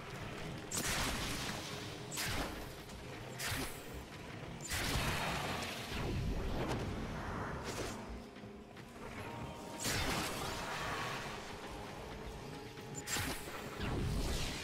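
Sharp magical blasts burst and whoosh again and again.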